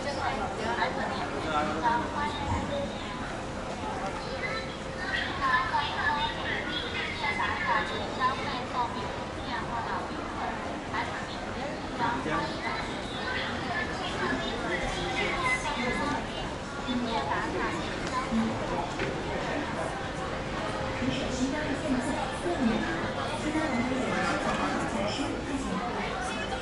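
Men and women chatter nearby and in the distance outdoors.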